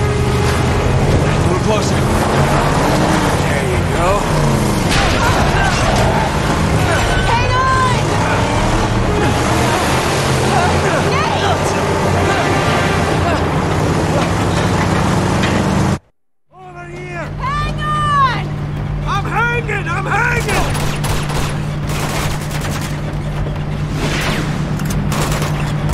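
Heavy truck engines rumble and roar steadily.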